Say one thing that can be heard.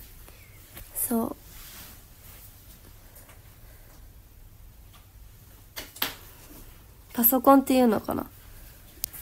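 A young woman speaks softly and briefly, close to the microphone.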